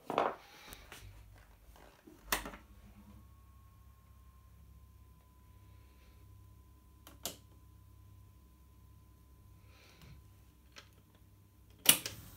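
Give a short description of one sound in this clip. A tape machine hums softly as it runs.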